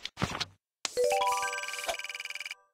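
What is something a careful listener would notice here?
A bright game chime rings out in rising notes as a menu opens.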